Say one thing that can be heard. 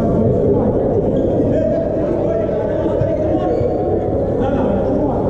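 Volleyball players call out to each other in a large echoing hall.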